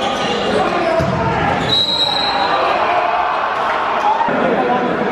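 A crowd cheers and chatters in an echoing indoor hall.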